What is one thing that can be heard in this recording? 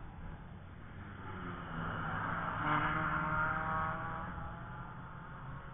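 A car engine roars as the car speeds past and fades away.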